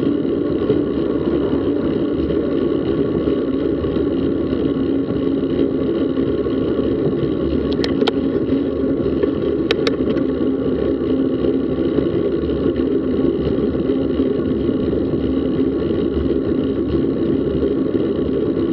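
Wind buffets loudly past a moving bicycle outdoors.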